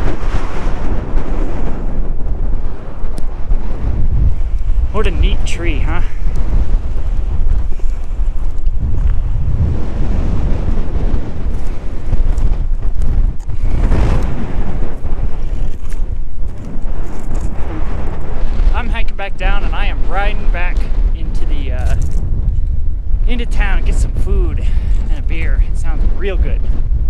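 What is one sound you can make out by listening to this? Wind buffets loudly across open ground outdoors.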